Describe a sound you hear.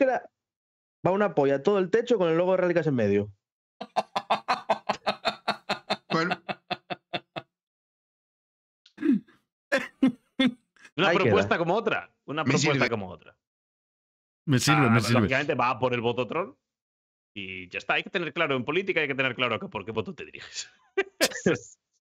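A young man talks with animation through a headset microphone over an online call.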